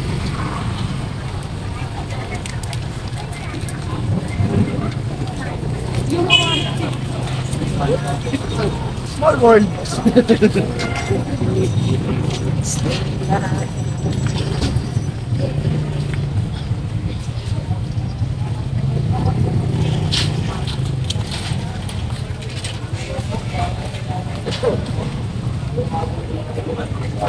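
A busy outdoor street crowd murmurs and chatters all around.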